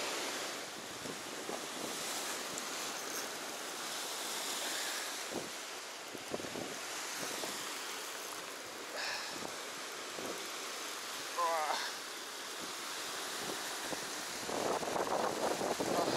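Waves wash and break against rocks close by.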